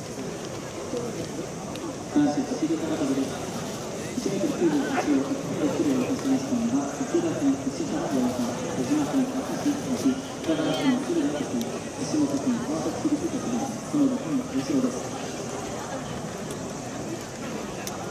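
A crowd murmurs in a large outdoor stadium.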